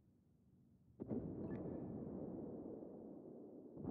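Heavy ship guns fire with a loud boom and a deep rolling rumble.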